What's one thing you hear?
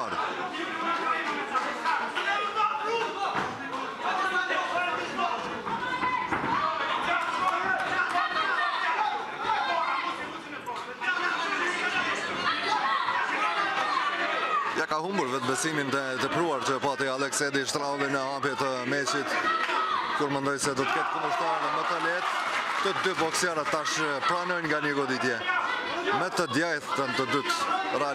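A crowd of men and women chatters and calls out in a large hall.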